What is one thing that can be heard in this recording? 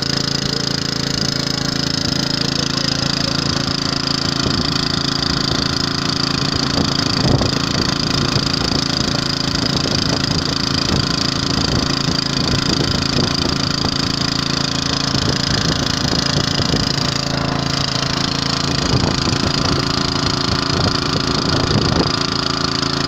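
A motor pump hums steadily nearby.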